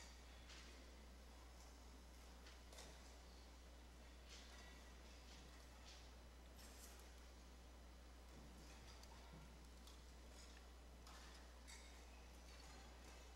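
A man speaks faintly in a large echoing hall.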